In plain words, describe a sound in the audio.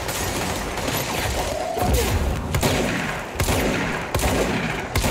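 A gun fires in sharp single shots.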